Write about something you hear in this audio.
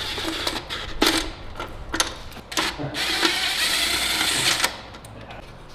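A cordless power tool whirs in short bursts.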